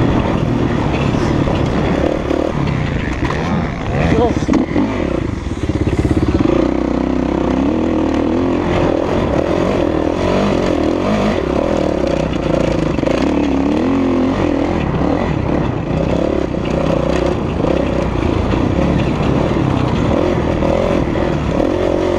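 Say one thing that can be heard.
A four-stroke motocross bike revs hard close up, shifting through its gears.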